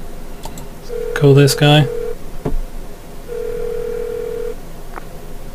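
A phone ringing tone sounds through an earpiece.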